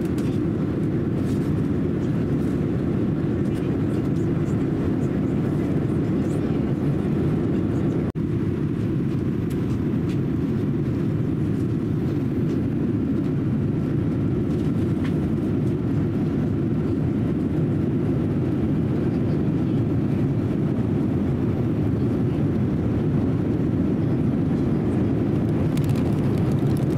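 Jet engines drone with a steady low roar, heard from inside an airliner cabin.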